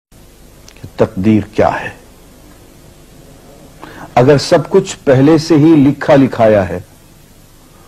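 A middle-aged man speaks slowly and earnestly, close to a microphone.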